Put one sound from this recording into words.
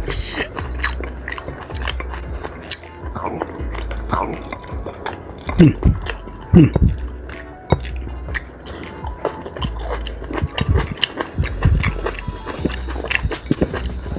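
A man chews food noisily and smacks his lips close by.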